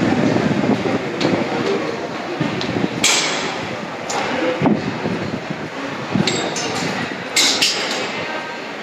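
Footsteps tap on a hard floor in an echoing hall.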